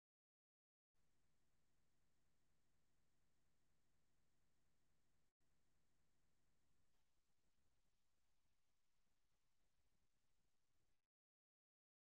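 A woman speaks calmly into a microphone, close by.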